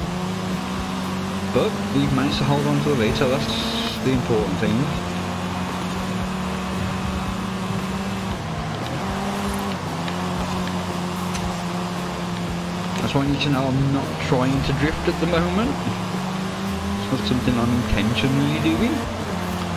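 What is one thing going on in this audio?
A car engine hums steadily and changes pitch as it speeds up and slows down.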